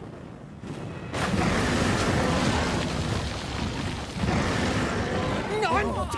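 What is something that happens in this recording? A huge beast bursts through rock with a loud, rumbling roar.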